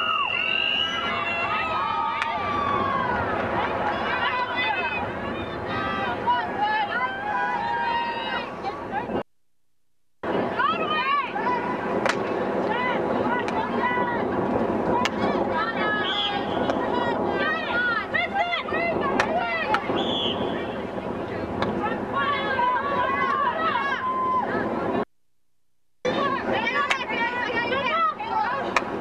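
Girls and young women shout and call out across an open field.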